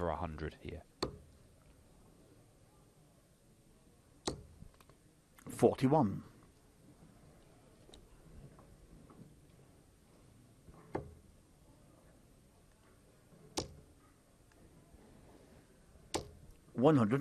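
Darts thud sharply into a board.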